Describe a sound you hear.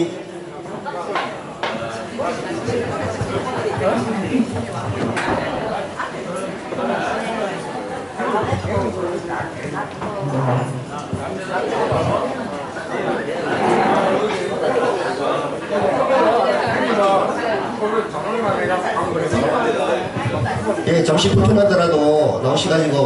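Backing music plays over loudspeakers.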